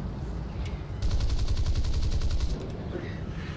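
Machine guns fire in a rapid burst.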